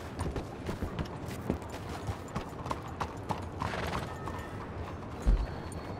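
Horse hooves clop on stone pavement.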